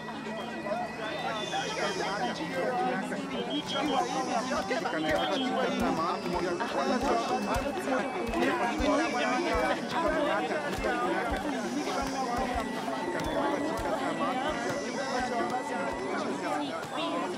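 A crowd of men and women chatters in a busy outdoor market.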